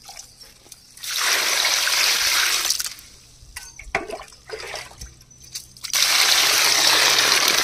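Water pours and splashes into a pot.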